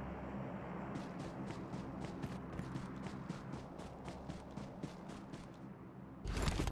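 Footsteps run over grass and dirt in a video game.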